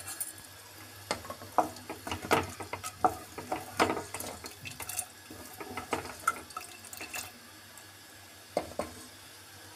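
A spatula stirs and squelches through thick curry, scraping a metal pot.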